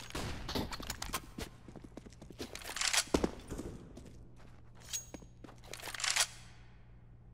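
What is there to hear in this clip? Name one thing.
Footsteps run quickly across stone.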